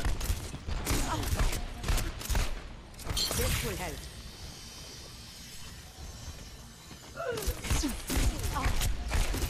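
A game rifle fires sharp shots.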